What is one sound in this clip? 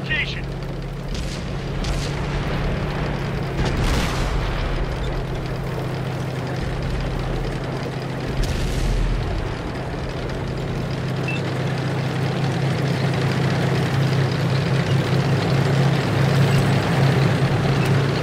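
Tank tracks clatter and squeak over rough ground.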